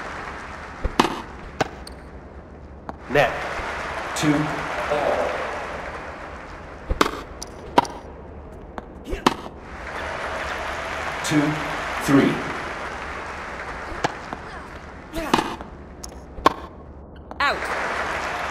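A tennis racket strikes a ball with sharp pops, back and forth.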